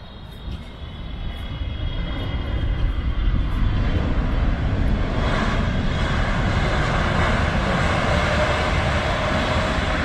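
A jet airliner roars on the runway, growing louder.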